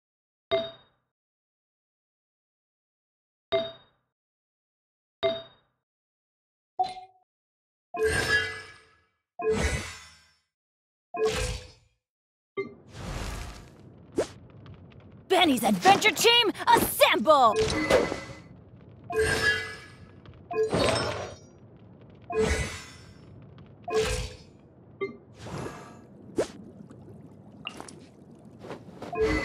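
Short game menu chimes sound as selections change.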